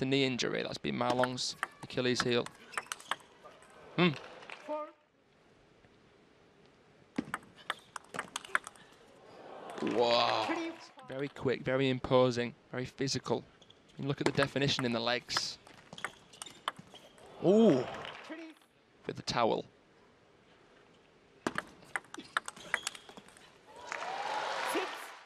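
A table tennis ball clicks off paddles and the table in a rally.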